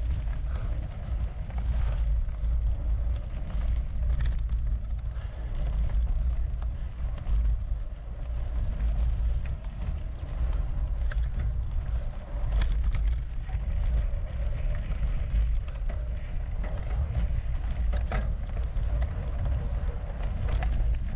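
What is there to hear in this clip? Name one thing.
Wind rumbles against a moving microphone outdoors.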